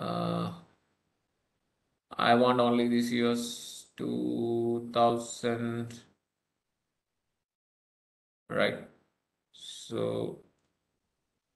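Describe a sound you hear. A man speaks calmly through a microphone on an online call, in short bursts with pauses.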